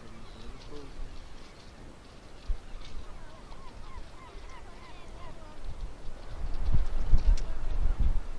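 Wind blows and rumbles outdoors, growing stronger.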